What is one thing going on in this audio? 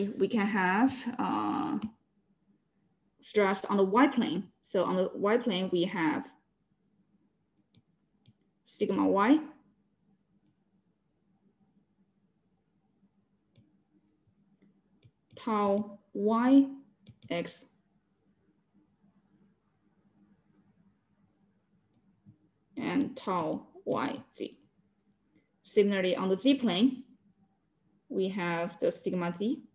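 A woman explains calmly in short phrases over an online call.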